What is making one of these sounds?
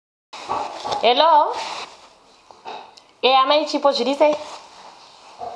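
A woman speaks warmly and cheerfully into a phone, close by.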